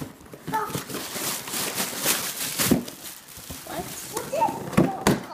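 Plastic wrapping crinkles loudly.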